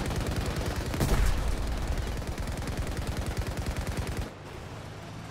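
Explosions boom nearby.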